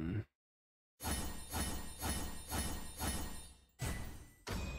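Short game chimes ring out in quick succession.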